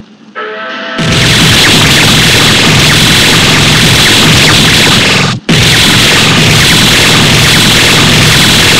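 Fire blasts roar loudly.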